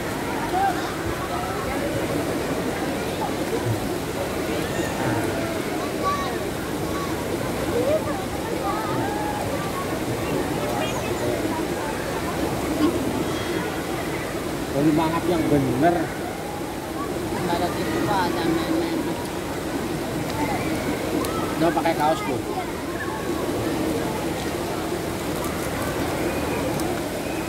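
A crowd of people chatter in the distance outdoors.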